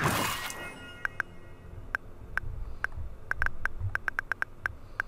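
Short electronic menu ticks sound in quick succession as a list scrolls.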